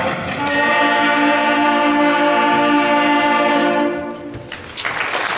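A band holds a loud final chord in a large echoing hall.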